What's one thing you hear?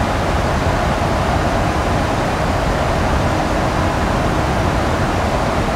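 Jet engines drone steadily in a cabin.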